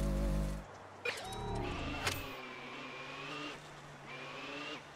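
A small vehicle's engine hums and whines, rising and falling in pitch as it drives.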